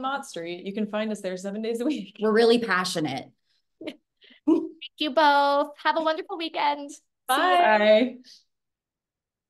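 Two women speak cheerfully over an online call.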